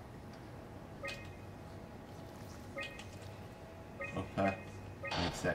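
A computer terminal gives short electronic beeps.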